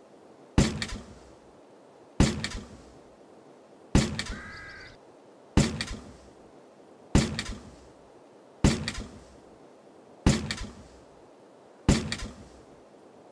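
A springy trampoline thud sounds at a steady beat as a cartoon figure bounces.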